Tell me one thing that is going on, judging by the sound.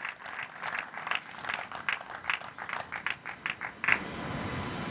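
A small group of people applauds.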